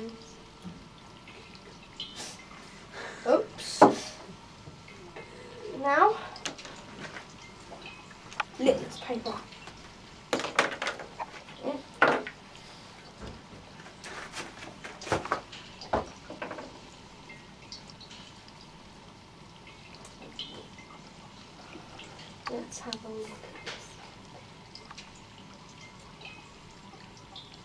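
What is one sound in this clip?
Glassware clinks and taps.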